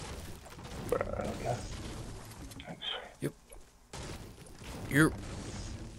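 A pickaxe strikes a tree trunk with repeated hard thuds.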